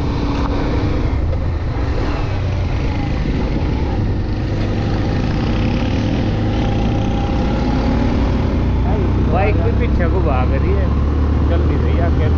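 A motorcycle engine runs while riding along.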